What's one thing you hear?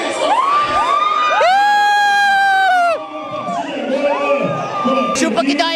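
A crowd of young men shouts and cheers loudly.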